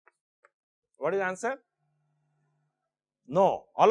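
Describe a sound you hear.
A middle-aged man speaks with animation through a clip-on microphone.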